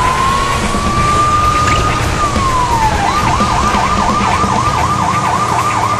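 A police siren wails, first in a long rising and falling tone, then in a quick repeating yelp.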